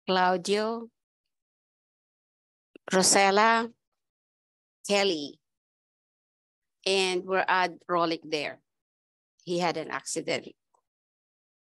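A woman talks in short phrases over an online call.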